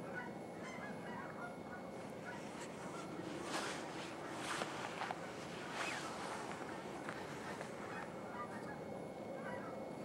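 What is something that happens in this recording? Large birds call in short, high chirps in the distance.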